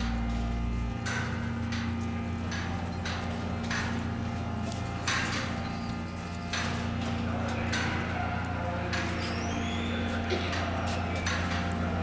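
A metal turnstile clanks and rattles as it turns, again and again.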